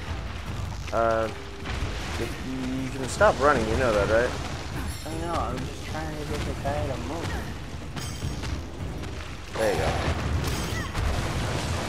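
A large creature roars and shrieks.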